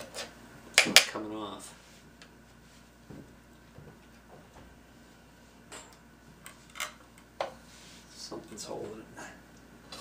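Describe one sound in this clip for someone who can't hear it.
A metal tool clicks and scrapes against a metal part.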